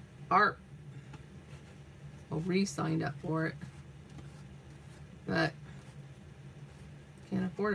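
Paper and card rustle softly as they are handled.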